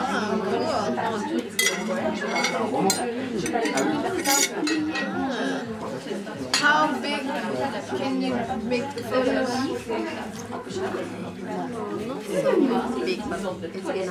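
Several adults talk over one another nearby.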